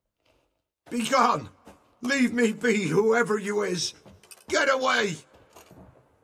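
A man shouts in fear at close range.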